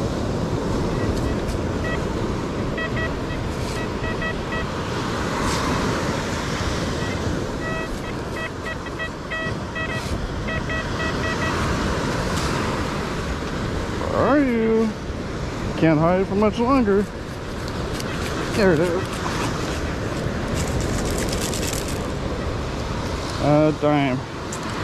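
A metal detector beeps and warbles as it sweeps over sand.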